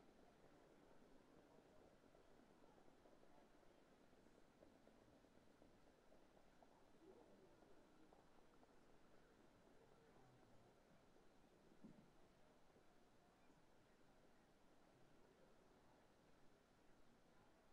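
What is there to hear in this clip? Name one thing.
Cart wheels rumble over dirt.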